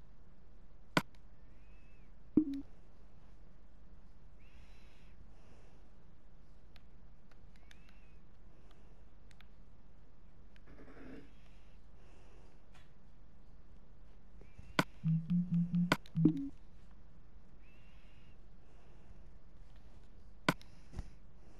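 Game menu buttons click sharply.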